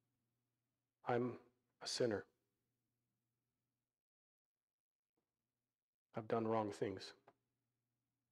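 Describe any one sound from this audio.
A man speaks slowly and calmly through a microphone, with long pauses.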